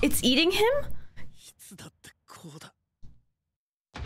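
A young woman laughs into her hands.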